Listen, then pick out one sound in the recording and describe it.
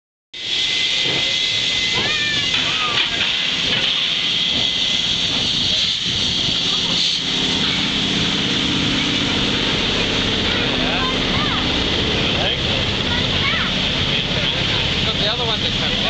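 A steam train rolls past close by with a loud rumble and hiss.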